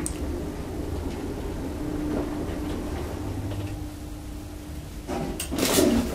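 A traction elevator car hums as it travels.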